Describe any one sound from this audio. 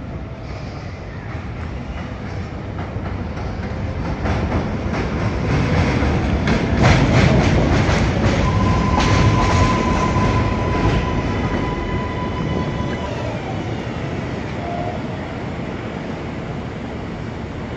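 A subway train rumbles and rattles loudly as it pulls into an outdoor station.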